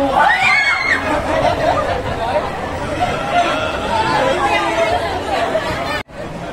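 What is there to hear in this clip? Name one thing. Young women laugh excitedly.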